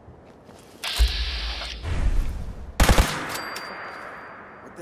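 A heavy gun fires with a loud roaring blast that echoes away.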